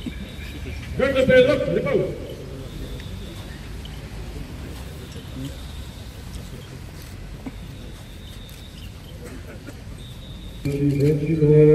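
A man chants a prayer in a low, sung voice outdoors.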